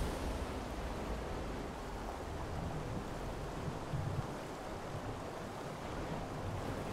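Water rumbles and churns in a steady, muffled way.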